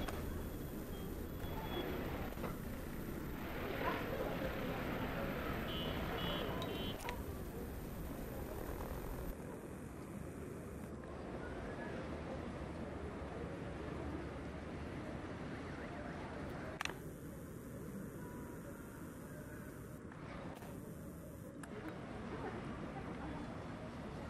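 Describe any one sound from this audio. An escalator hums steadily.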